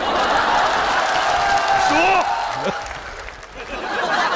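An audience laughs and cheers loudly in a large hall.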